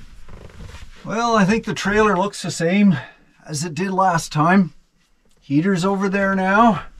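An older man speaks calmly and cheerfully close by.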